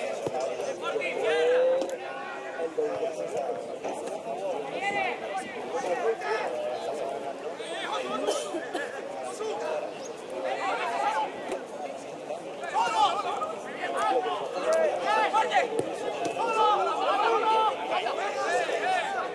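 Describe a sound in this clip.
Two men talk with animation close by, outdoors.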